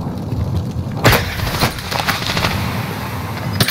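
Glass shatters close by.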